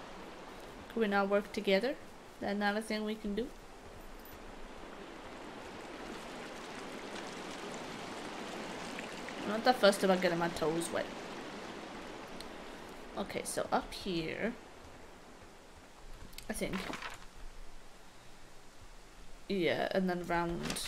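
A young woman talks calmly into a close microphone, in short bursts.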